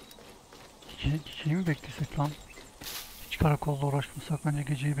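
A young man talks calmly and with some animation close to a microphone.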